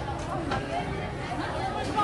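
Women talk nearby.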